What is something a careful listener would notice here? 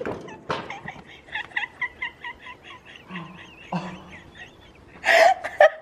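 A young woman laughs up close in bursts.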